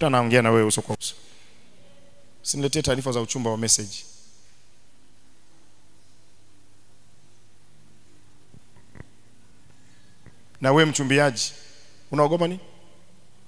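A man speaks into a microphone with emphasis, in bursts with long pauses, heard through loudspeakers in a large room.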